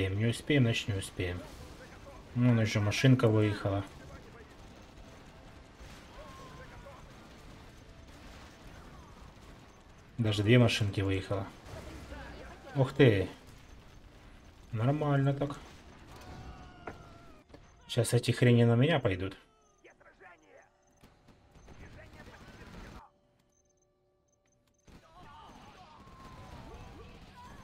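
Explosions boom and gunfire crackles in a battle.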